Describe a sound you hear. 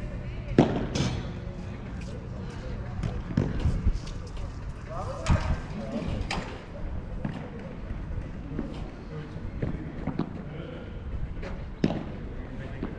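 Paddle rackets hit a ball with sharp pops.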